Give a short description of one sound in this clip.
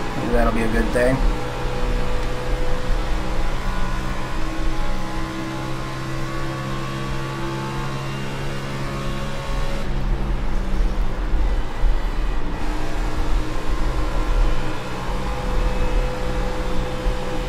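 A race car engine roars steadily at high revs.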